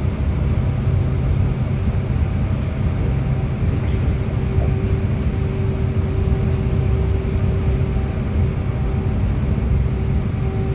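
Tyres roar on the road surface, echoing in the tunnel.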